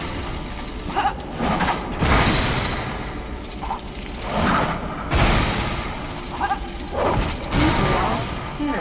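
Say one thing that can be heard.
Loud blasts and crashes burst out one after another.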